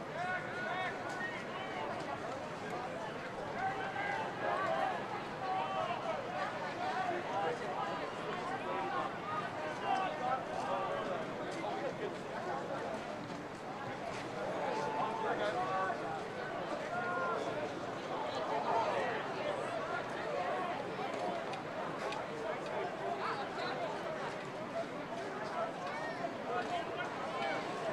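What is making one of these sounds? A crowd cheers from the stands.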